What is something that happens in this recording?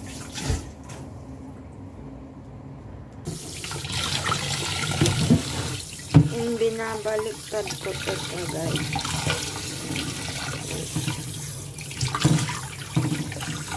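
Wet meat squelches as hands squeeze and rub it.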